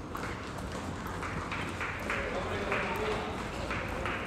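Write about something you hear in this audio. Bicycles roll past on a street.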